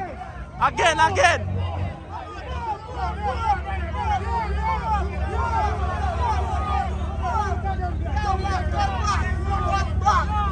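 Young men cheer and shout outdoors.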